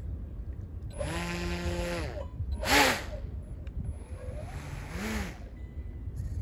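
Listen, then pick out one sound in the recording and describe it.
A small model boat motor whines and revs in short bursts.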